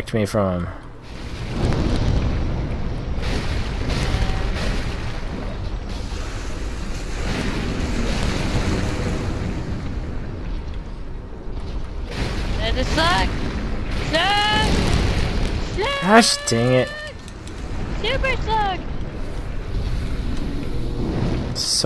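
Deep heavy rumbling and thuds fill the air as a giant creature stomps.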